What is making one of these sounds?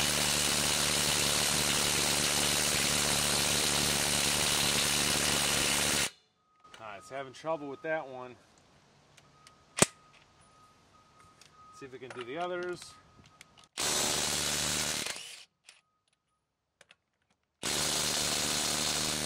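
An impact wrench whirs loudly in bursts, spinning lug nuts.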